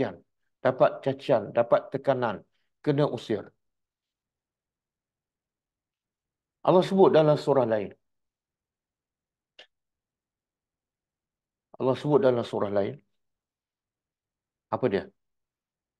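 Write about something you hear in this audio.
An elderly man speaks calmly and deliberately into a close microphone, with long pauses.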